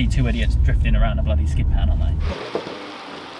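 A young man talks with animation inside a car.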